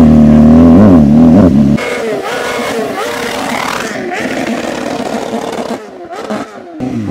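A motorcycle engine revs loudly up close, then drones on more faintly as the motorcycle rides away.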